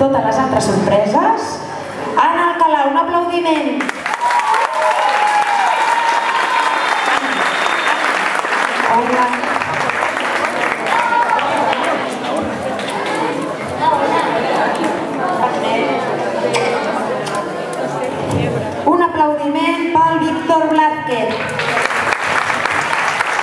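A woman speaks into a microphone, heard through loudspeakers in an echoing hall.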